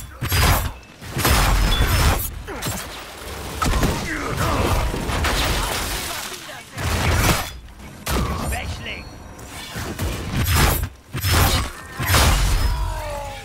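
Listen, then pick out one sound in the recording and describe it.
Swords clash and strike in a fight.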